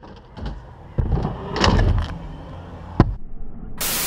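A scooter's wheels clack hard on concrete.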